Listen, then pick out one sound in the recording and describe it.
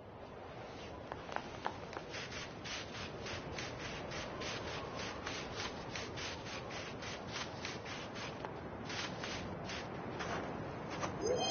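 Quick footsteps patter on sand and stone.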